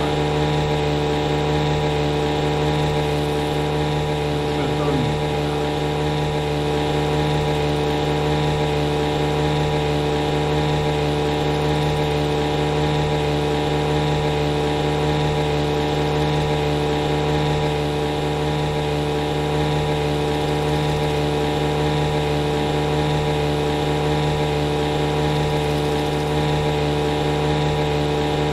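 An outboard motor drones steadily.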